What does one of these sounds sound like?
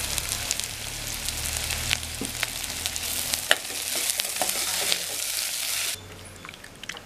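Food sizzles in a pot.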